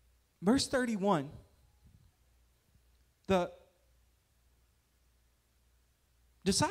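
A man speaks with animation into a microphone, with pauses between phrases.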